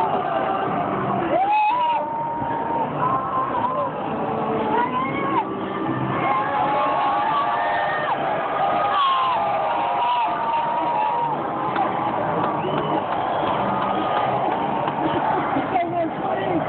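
A large crowd chatters and cheers loudly all around, outdoors in a big open stadium.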